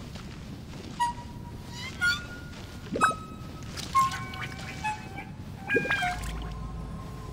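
Bright musical chimes ring out in quick short notes.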